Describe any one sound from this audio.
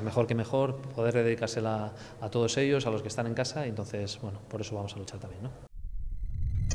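A man speaks calmly into a microphone up close.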